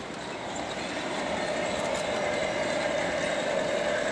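Small wheels clatter softly over model rails.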